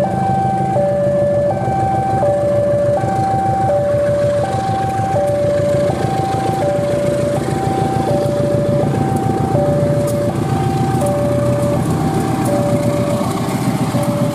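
Train wheels clack over the rail joints.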